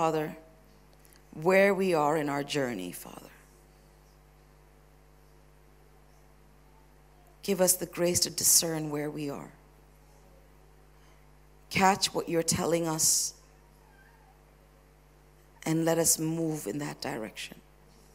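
A woman speaks with feeling into a microphone, in bursts with long pauses, her voice echoing slightly in a large room.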